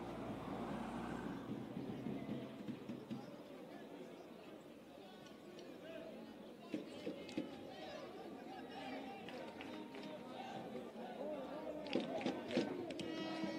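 Young men shout and talk together in a huddle outdoors.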